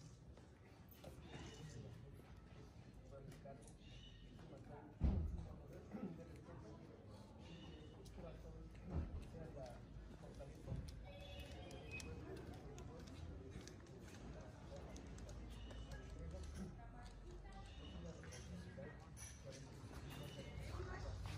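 A crowd of men and women murmurs quietly outdoors.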